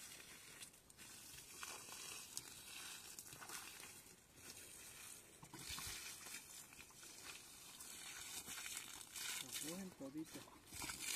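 Boots crunch and rustle through dry leaves and undergrowth.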